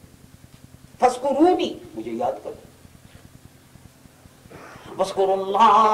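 A man recites in a slow, drawn-out, melodic voice through a microphone.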